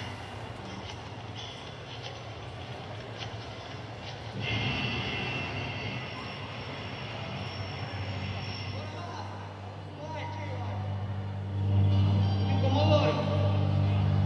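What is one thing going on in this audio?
A man sings through loudspeakers in a large, echoing hall.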